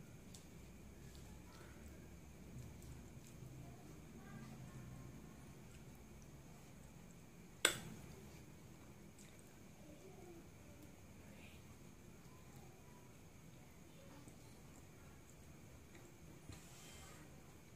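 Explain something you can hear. A woman chews and smacks her lips softly while eating.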